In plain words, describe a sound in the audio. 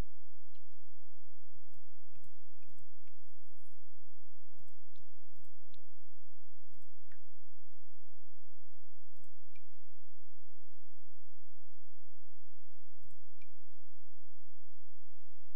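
Soft clicks sound now and then as options are picked.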